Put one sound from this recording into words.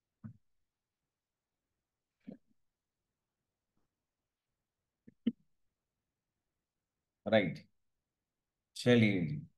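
A young man speaks calmly into a close microphone, with short pauses.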